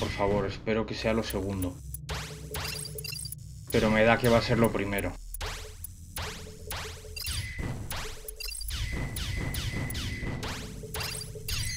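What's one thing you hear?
Video game laser shots zap again and again.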